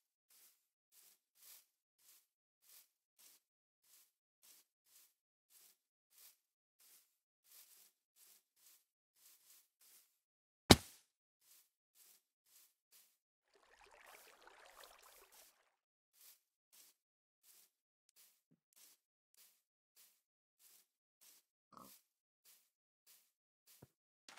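Footsteps patter steadily on grass.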